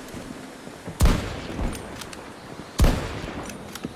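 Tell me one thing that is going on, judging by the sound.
Loud rifle shots crack with echoes.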